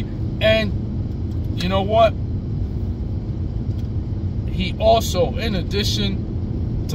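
A car engine hums low and steady, with road noise.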